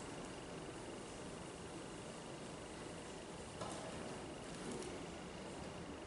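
Pages of a book rustle as an older man turns them.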